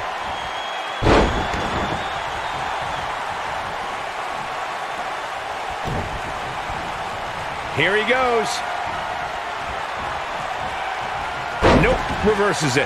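A heavy body slams down onto a wrestling ring mat with a loud thud.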